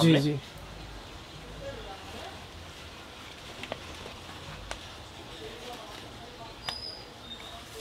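A shirt's plastic wrapping crinkles.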